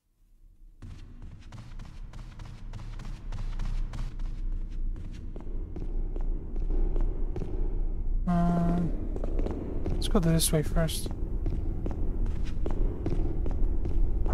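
Footsteps tap across a hard floor in a large echoing hall.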